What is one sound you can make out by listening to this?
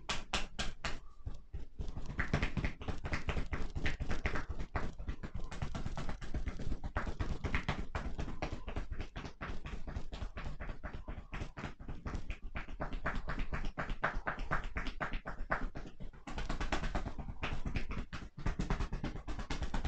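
Hands rapidly pat and tap on a person's back.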